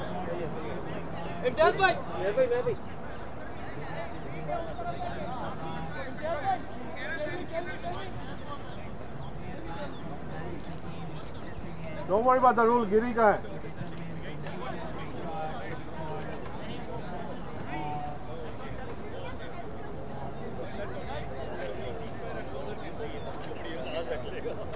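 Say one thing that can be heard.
Men call out and talk across an open field outdoors.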